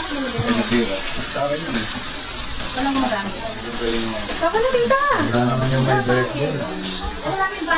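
A group of young women and men sing together nearby.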